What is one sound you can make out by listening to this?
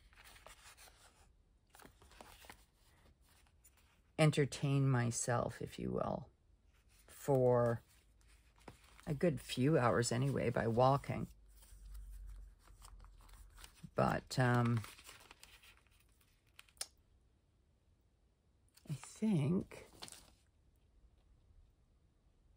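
Paper sticker sheets rustle softly as they are handled.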